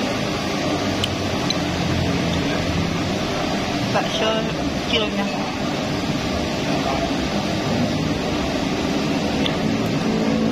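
A spoon and fork clink against a bowl.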